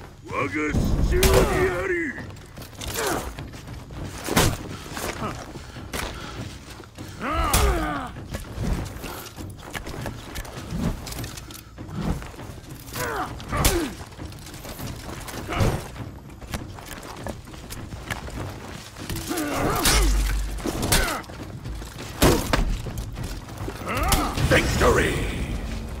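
Heavy blades clash and strike in a fight, with sharp metallic hits.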